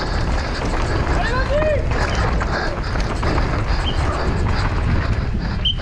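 Bike tyres rumble and crunch over a rough dirt trail.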